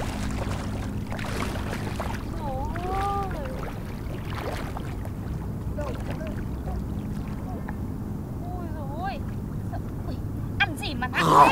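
Water splashes softly as a girl wades through shallow water.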